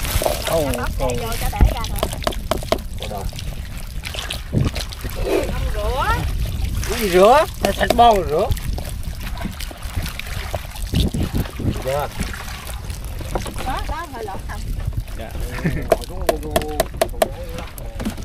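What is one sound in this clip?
Wet fish slither and rustle as a plastic scoop digs into them.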